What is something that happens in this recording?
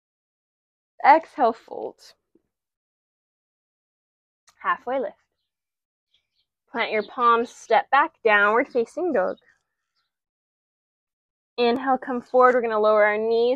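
A young woman speaks calmly and clearly, close to a microphone, in short phrases with pauses.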